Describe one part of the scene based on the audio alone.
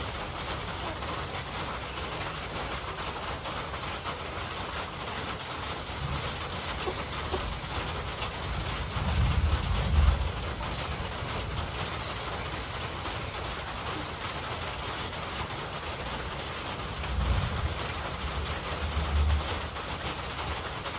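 Chickens scratch and peck at dry ground nearby.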